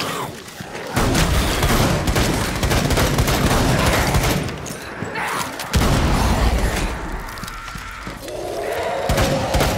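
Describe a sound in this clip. Loud explosions boom and echo.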